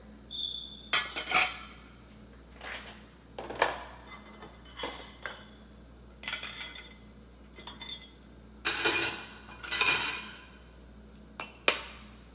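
An egg cracks against a metal wok.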